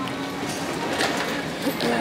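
A wheeled suitcase rolls across a hard floor.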